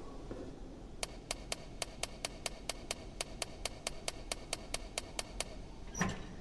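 A safe's combination dial clicks rapidly as it turns.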